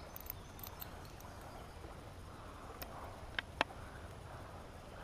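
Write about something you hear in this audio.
Water trickles gently nearby.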